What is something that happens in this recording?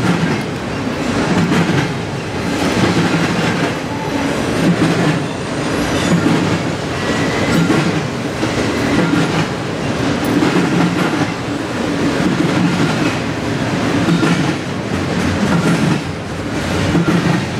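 A freight train rumbles past steadily, its wheels clacking over rail joints in a regular rhythm.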